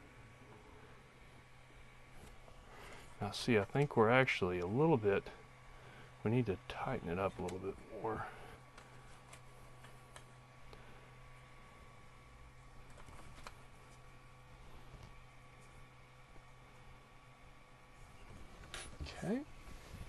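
Small plastic parts click and tap as hands adjust them.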